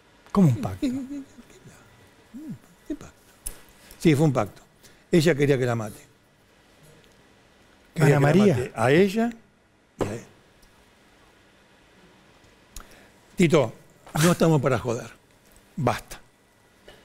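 An elderly man speaks calmly into a microphone, in short bursts with pauses.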